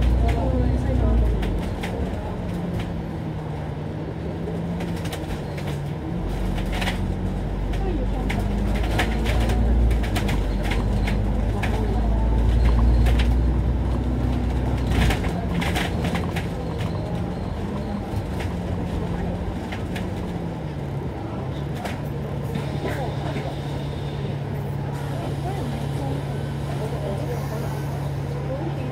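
A bus engine hums steadily, shifting pitch as the bus speeds up and slows down.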